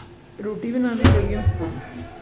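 A metal bowl is set down with a knock.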